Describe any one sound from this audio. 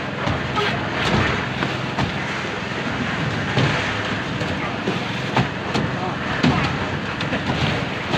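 Metal buckets of concrete clank and knock.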